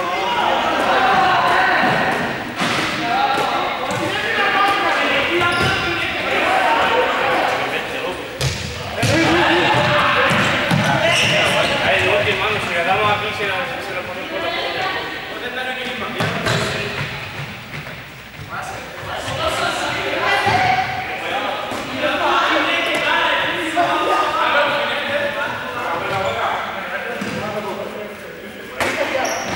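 Young men and women shout and call out during a game in a large echoing hall.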